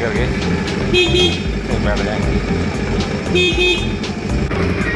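A small train horn honks twice.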